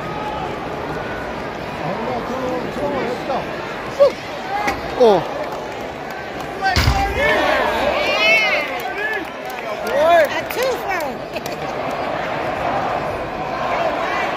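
A large crowd roars in a big echoing arena.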